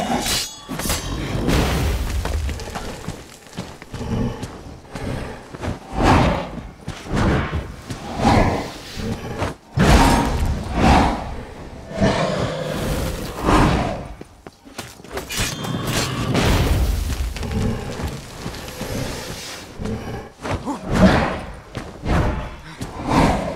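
Blades swish and strike in a fight.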